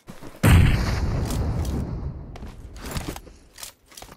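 Footsteps patter quickly on hard ground as a game character runs.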